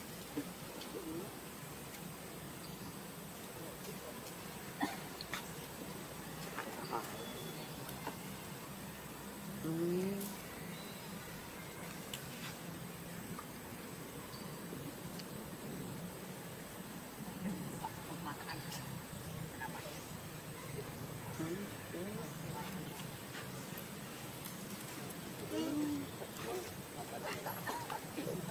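A baby monkey squeals and cries in short, rising calls.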